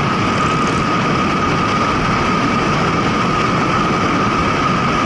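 Strong wind roars steadily past a moving motorcycle.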